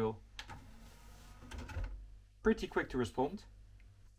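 A disc tray slides shut with a soft mechanical whirr.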